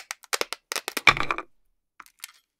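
Two halves of a wooden toy clack apart onto a plate.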